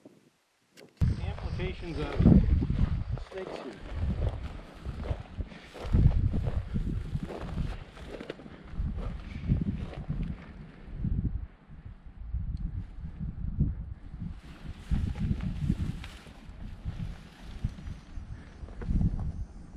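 Footsteps crunch on dry gravel and stones.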